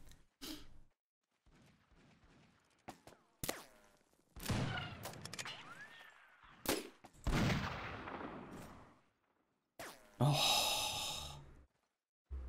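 A musket is loaded with metallic clicks and scrapes.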